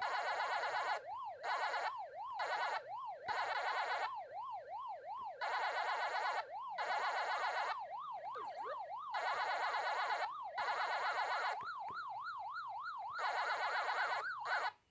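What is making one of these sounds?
Quick electronic chomping blips repeat in bursts from an arcade game.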